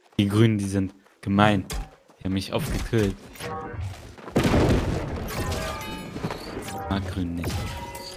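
Sword blows strike and thud in a fight.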